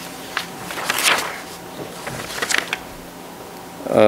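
Papers rustle as a man shuffles them.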